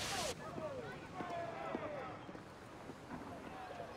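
A crowd of men murmurs outdoors.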